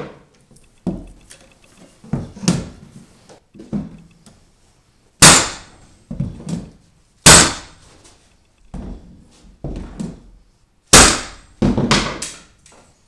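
A pneumatic floor nailer fires with loud, sharp bangs.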